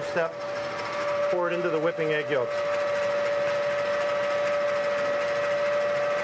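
An electric mixer whirs steadily.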